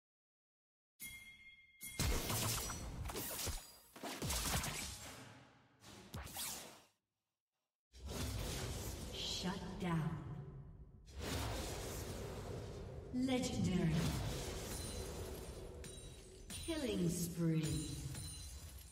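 Video game combat effects whoosh and crackle as spells are cast.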